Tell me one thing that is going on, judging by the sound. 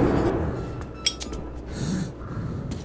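A lighter clicks and flickers.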